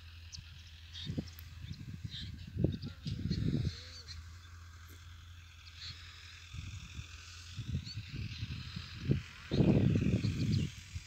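Wind gusts rumble across the microphone outdoors.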